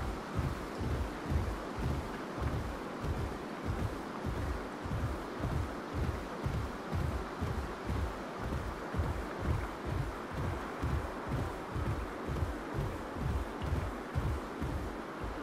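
Heavy footsteps thud steadily on dry ground.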